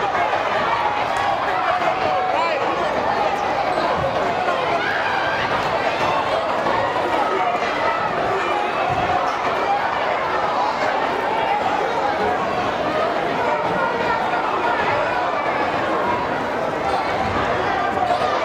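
A crowd chatters and murmurs throughout a large echoing gym.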